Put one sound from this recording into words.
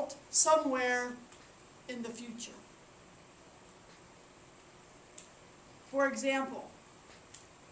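A woman speaks calmly through a headset microphone, reading out in short phrases.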